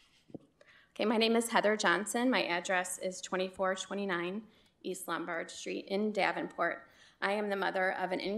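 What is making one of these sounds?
A woman speaks calmly into a microphone.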